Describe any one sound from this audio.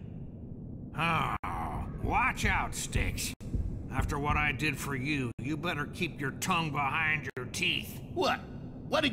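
A man speaks in a low, gruff voice, close by.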